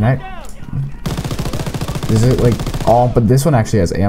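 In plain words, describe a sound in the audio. A machine gun fires rapid bursts.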